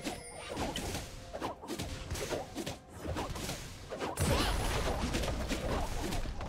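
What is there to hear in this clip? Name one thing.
Magic blasts and weapon hits clash in a game battle.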